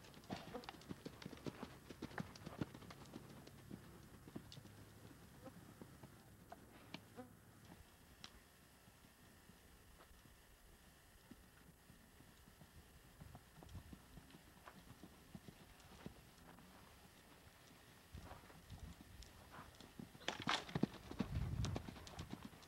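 A horse's hooves thud on soft sand.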